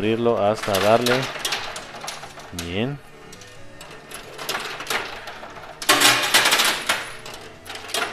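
Coins clink and clatter in a coin pusher machine.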